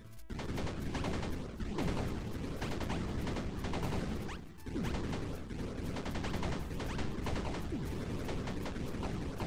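Video game blasts and explosions pop rapidly in quick bursts.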